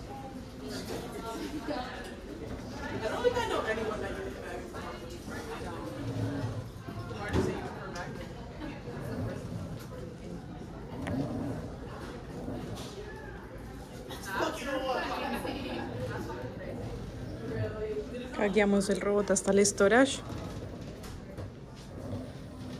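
A small robot's motor hums quietly as it rolls across a hard floor.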